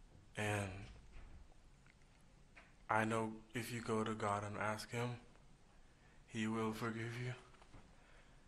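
A young man speaks haltingly into a microphone, with long pauses.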